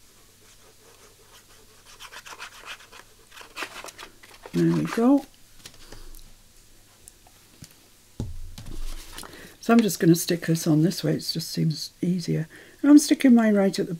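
Paper rustles and crinkles as an envelope is handled.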